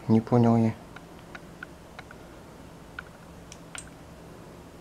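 A small plastic device clicks softly as it is handled.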